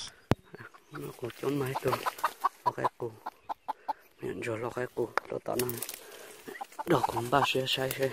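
A chicken clucks close by.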